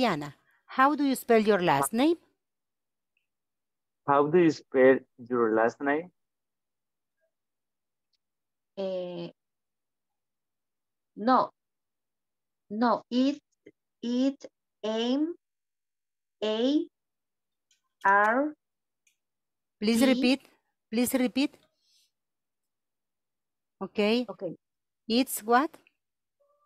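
A woman speaks slowly and clearly over an online call.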